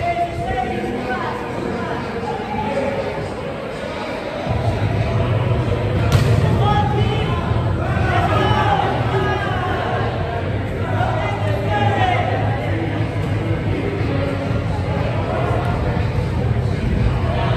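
Men shout and call to each other across a large echoing hall.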